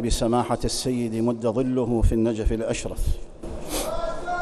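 An elderly man speaks calmly and firmly into a microphone, in a reverberant hall.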